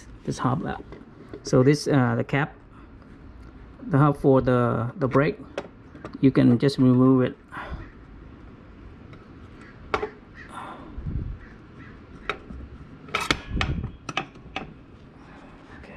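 Small metal parts clink and tap as a wheel hub is taken apart.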